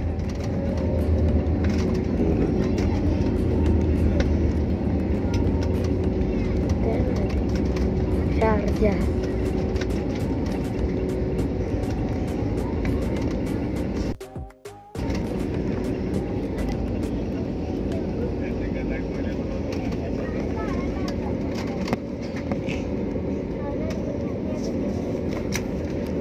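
An airliner's wheels rumble over the runway.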